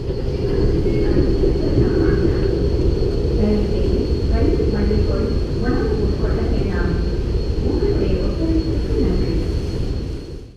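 A man talks in a low voice, close by.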